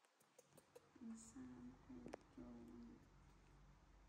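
A baby monkey squeals in short cries.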